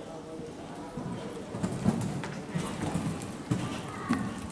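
Horse hooves thud on soft sand in a large echoing hall.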